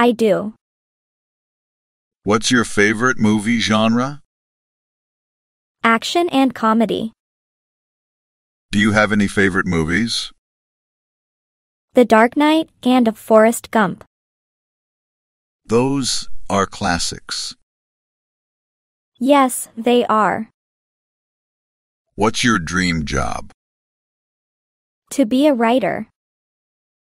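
A young man answers calmly in short phrases.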